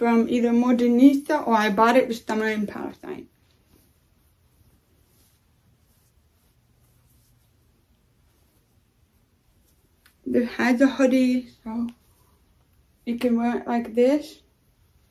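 A young woman talks calmly close by, with pauses.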